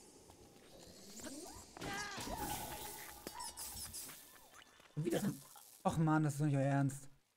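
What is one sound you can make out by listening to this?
Electricity crackles and zaps in a sharp burst.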